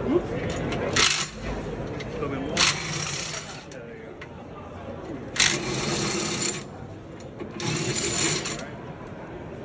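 A pneumatic impact wrench whirs in short, loud bursts.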